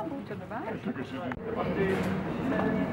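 An elderly man talks calmly close by.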